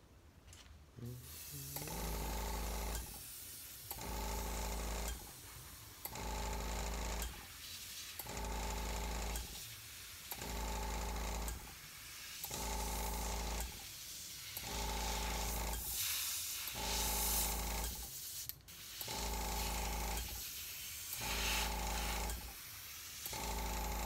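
An airbrush hisses in short bursts of spraying air.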